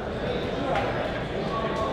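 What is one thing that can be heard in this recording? People chatter indistinctly in a large echoing hall.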